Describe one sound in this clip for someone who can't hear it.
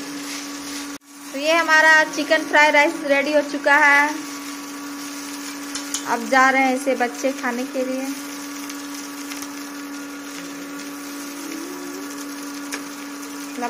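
A spatula scrapes and stirs food in a frying pan.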